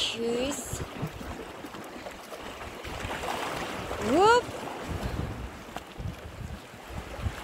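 Small waves splash and gurgle between rocks close by.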